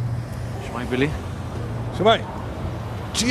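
A young man greets briefly.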